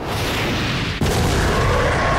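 A huge explosion booms and roars.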